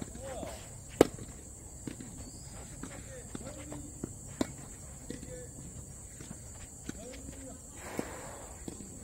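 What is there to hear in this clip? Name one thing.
A tennis ball is struck with a racket outdoors.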